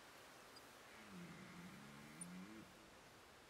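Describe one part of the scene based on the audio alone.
A deer mating call sounds faintly from a hunting caller.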